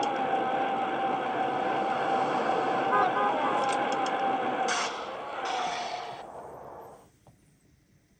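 Game sounds play from a tablet speaker.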